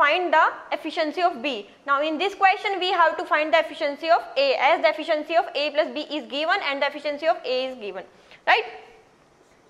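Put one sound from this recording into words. A young woman speaks calmly and clearly into a close microphone.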